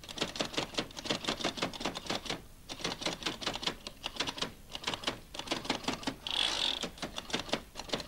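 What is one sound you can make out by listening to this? A braille typewriter clatters as keys are pressed.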